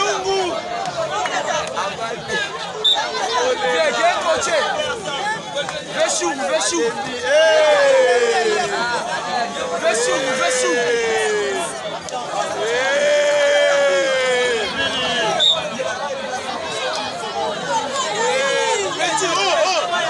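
A large outdoor crowd shouts, cheers and chatters loudly.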